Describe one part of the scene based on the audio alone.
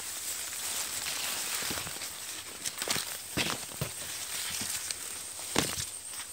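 Dry leaves and stalks rustle and crackle as someone pushes through dense grass.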